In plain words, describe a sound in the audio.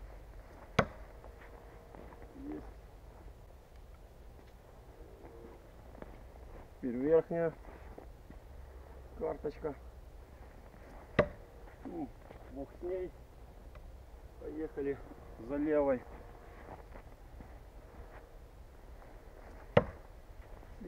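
A thrown knife thuds sharply into wood.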